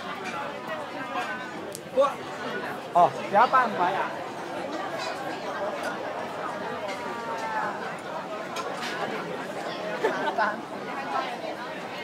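Men and women talk loudly nearby, with sudden louder calls.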